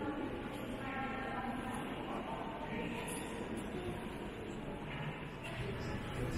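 Many people talk quietly in a large echoing hall.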